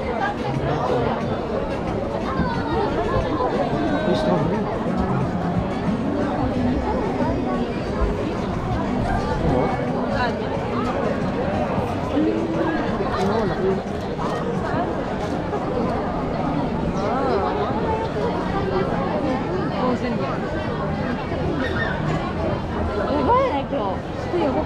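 A dense crowd of men and women chatters all around, close by.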